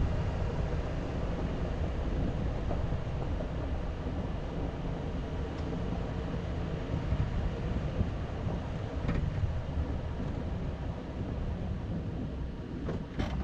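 Tyres crunch and rattle over a gravel track.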